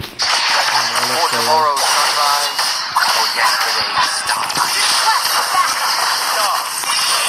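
Magic spells whoosh and crackle in a fast game battle.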